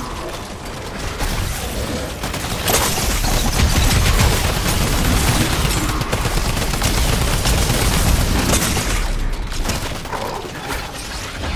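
Rapid gunfire and blasts crackle loudly in a fight.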